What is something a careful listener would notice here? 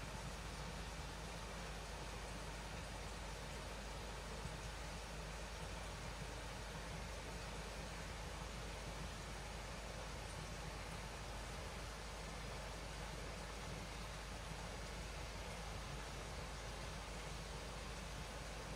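A stream trickles and flows gently outdoors.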